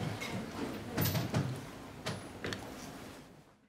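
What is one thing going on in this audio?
A chair creaks and knocks as a man stands up.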